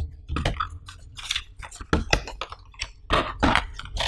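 Paper rustles and crinkles as a leaflet is handled.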